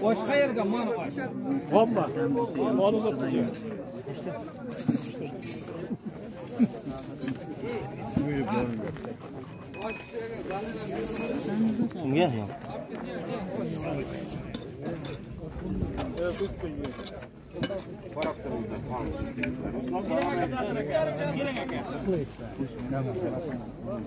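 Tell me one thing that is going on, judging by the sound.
Several men talk and chatter together nearby.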